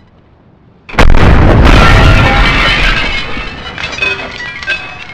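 A rifle shot rings out loudly and echoes away.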